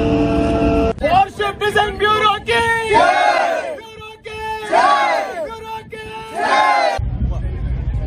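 A group of men and women cheer and chant loudly together.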